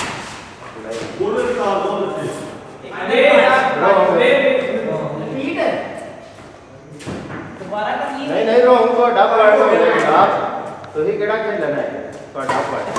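Young men talk and call out across an echoing hall.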